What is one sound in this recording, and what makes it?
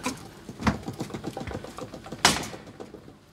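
Metal fittings clink and knock.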